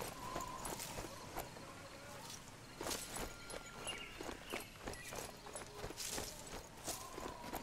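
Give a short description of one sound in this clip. Footsteps crunch quickly over gravel and grass.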